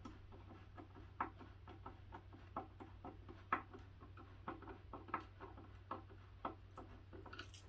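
A screwdriver clicks as a screw is driven into wood by hand.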